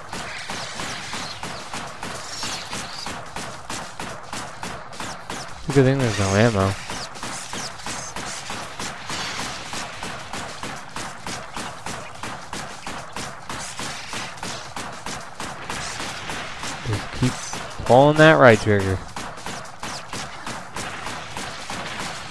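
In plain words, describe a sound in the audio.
Blades slash and clash again and again.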